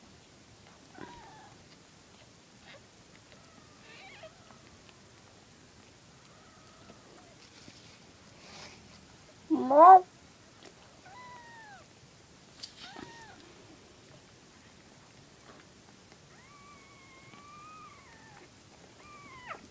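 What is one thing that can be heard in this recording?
Tiny kittens mew in high, thin squeaks now and then.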